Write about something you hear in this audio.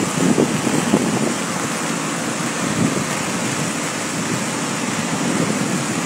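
A muddy waterfall roars steadily as it crashes down a cliff.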